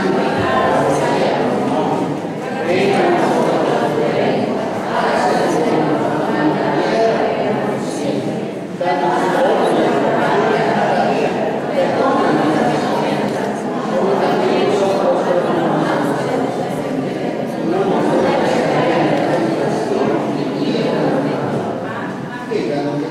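A crowd of men and women sings together.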